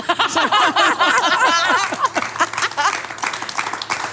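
A woman laughs loudly and heartily close to a microphone.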